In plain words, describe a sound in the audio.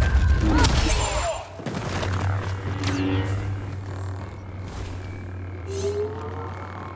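A lightsaber hums steadily with a low buzz.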